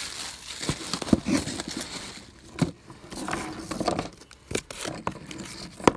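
Plastic toy figures clatter as they are gathered up.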